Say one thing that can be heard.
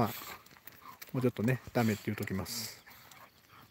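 Two dogs growl and grumble playfully up close.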